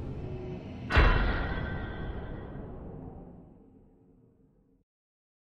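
An explosion booms and its roar slowly fades.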